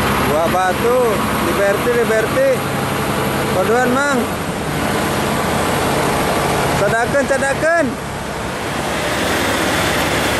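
A bus engine drones as the bus drives past.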